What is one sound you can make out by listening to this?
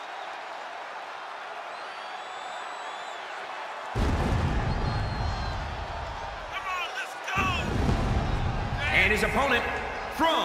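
A large crowd cheers in an echoing arena.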